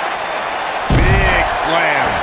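A heavy body slams down onto a hard floor.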